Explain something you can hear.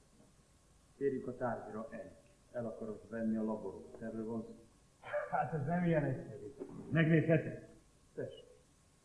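A man speaks with animation in a conversation.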